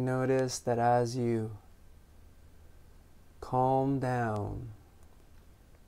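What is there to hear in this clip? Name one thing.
A man speaks calmly and slowly, close by, with pauses.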